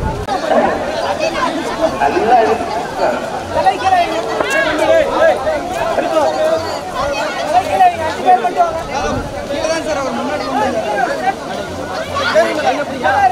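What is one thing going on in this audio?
A large crowd of men and women chatters and shouts outdoors.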